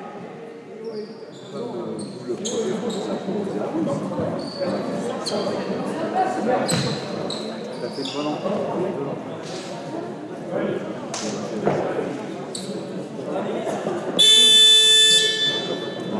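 Young men talk and call out to each other across the hall.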